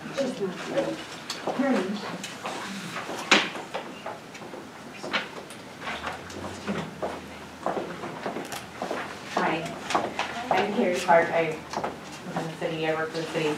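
A woman speaks to a group in a room with a slight echo.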